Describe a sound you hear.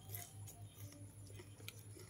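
A spoon scrapes on a plate.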